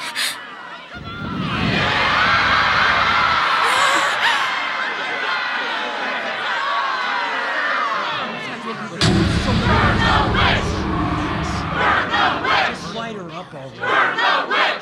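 A large crowd shouts and chants loudly.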